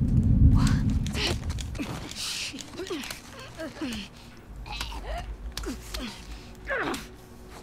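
A young woman grunts and strains close by in a struggle.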